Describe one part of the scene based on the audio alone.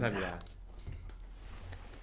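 Young men laugh and talk close to a microphone.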